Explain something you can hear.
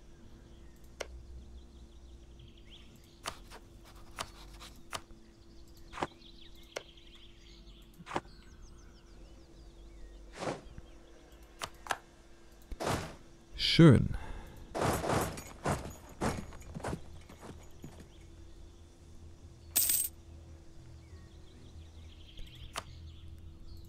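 Short clicks of a game interface sound now and then.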